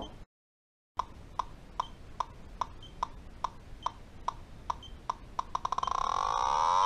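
A gas detector ticks with short beeps that speed up.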